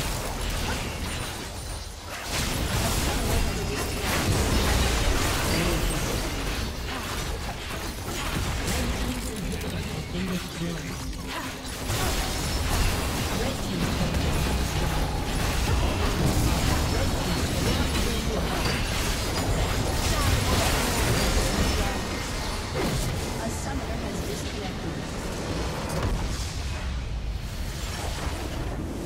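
Fantasy battle effects crackle, zap and boom in a fast, busy clash.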